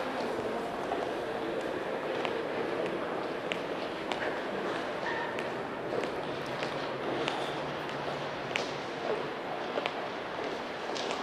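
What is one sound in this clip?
High heels click on a concrete floor in a large echoing space.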